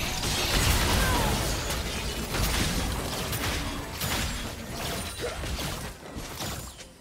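Game spell effects whoosh and clash in a busy fight.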